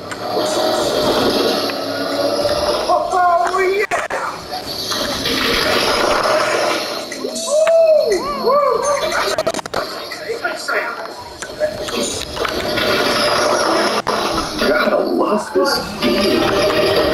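Racing car engines roar and whine at high speed.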